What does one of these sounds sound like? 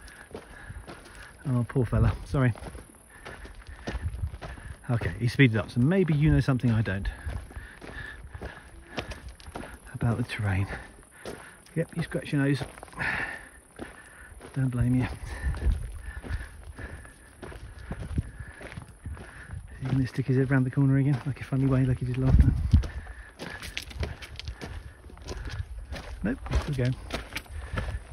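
A young deer's hooves tap and scrape on loose stones.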